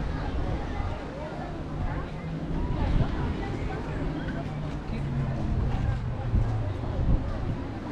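A crowd of adults chatter outdoors.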